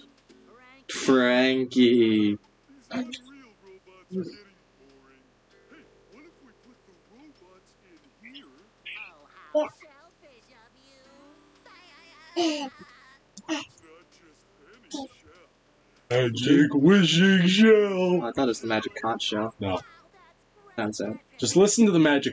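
A man speaks in a slow, dopey cartoon voice.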